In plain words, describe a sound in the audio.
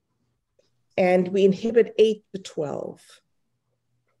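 A woman speaks warmly over an online call.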